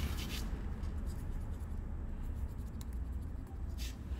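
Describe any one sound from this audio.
A highlighter pen squeaks and scratches across paper.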